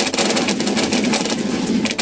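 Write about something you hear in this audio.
Explosions boom in a loud cluster.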